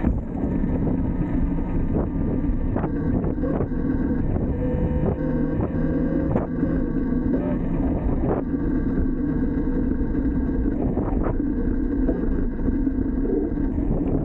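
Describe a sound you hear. Wind rumbles loudly against a moving rider.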